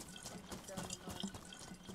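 Footsteps run quickly over grass.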